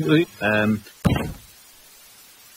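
A soft body flops to the ground with a thud.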